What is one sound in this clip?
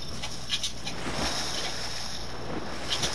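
Water rushes and gurgles as a figure dives under.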